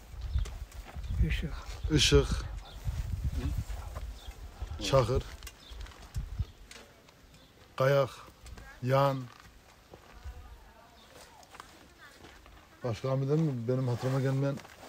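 A middle-aged man speaks calmly, close by.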